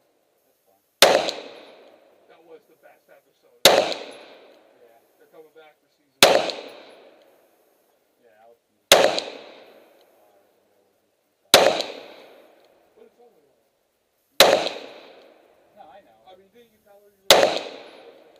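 A pistol fires single shots outdoors, each one ringing out and fading.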